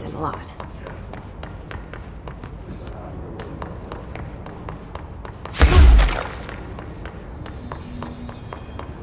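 Quick footsteps run across a hard floor, echoing in a large hall.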